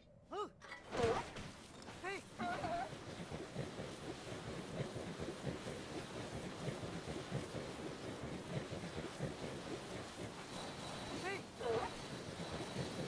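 A rider slides fast over sand with a steady rushing hiss.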